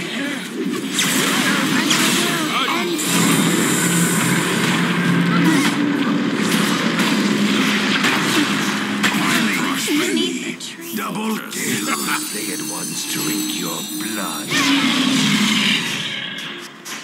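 Spell blasts and clashing weapons crackle and boom in a busy fight.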